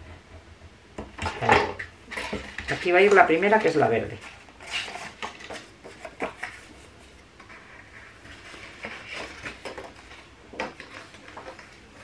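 Sheets of card rustle and slide as they are handled.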